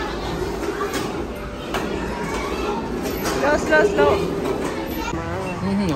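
Plastic toy wheels rumble over a hard floor.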